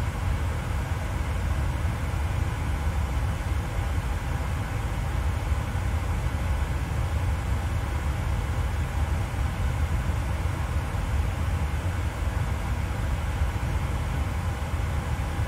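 A jet airliner's engines drone steadily with a deep rumble.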